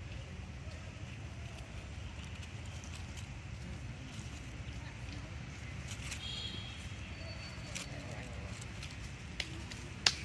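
Dry leaves rustle as a small monkey shifts on the ground.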